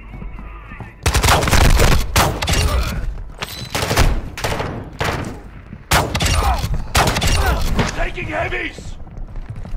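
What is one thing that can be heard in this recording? Gunshots fire in loud, quick bursts.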